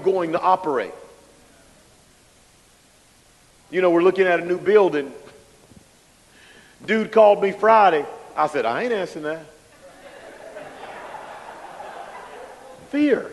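A man preaches with animation through a microphone, in bursts with pauses.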